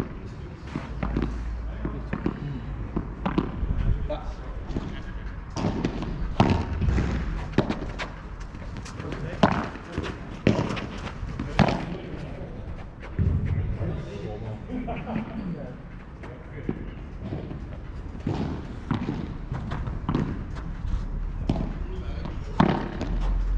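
Paddle rackets strike a ball with sharp pops outdoors.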